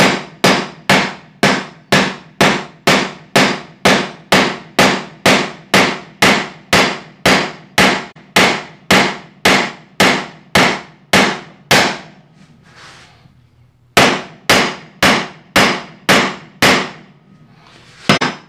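A wooden mallet strikes a chisel in quick, steady blows.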